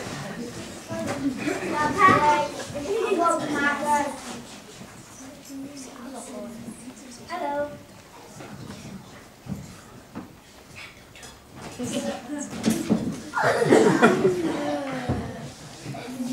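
Young children speak their lines loudly in a large echoing hall.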